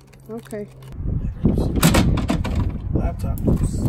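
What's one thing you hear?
A plastic crate lid is unlatched and lifted open with a clatter.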